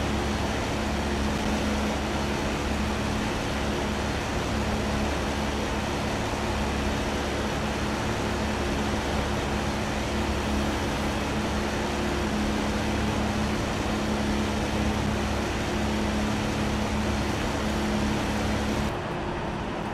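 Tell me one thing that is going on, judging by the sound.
A Formula One car engine idles.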